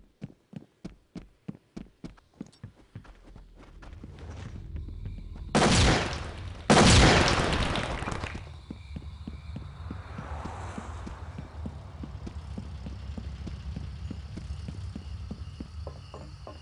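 Footsteps thud on a hard floor at a steady walking pace.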